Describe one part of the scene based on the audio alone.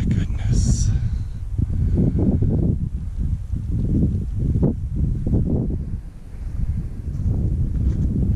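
Wind blows in gusts, rumbling over the microphone outdoors.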